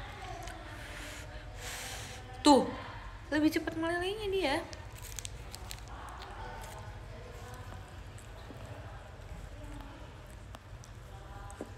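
A plastic wrapper crinkles close by.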